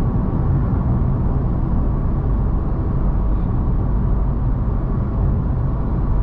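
A car drives steadily along a highway with a low rumble of tyres on the road.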